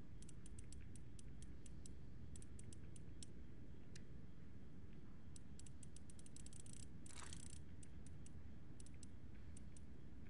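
A safe's dial clicks softly as it turns.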